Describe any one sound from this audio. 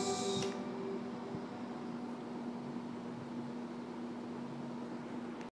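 An acoustic guitar rings with plucked, sustained notes.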